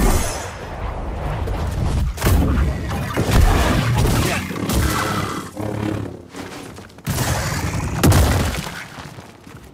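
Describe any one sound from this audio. Energy blades hum and clash loudly.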